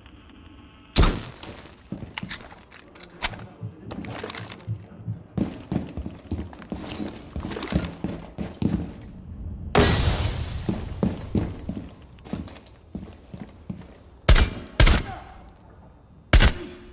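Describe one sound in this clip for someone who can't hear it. Gunshots crack loudly, a few at a time.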